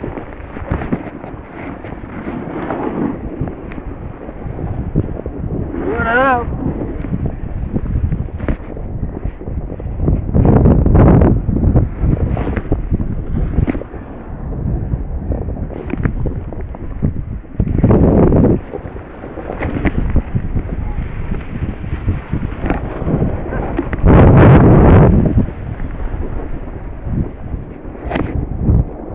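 Wind rumbles loudly past, outdoors.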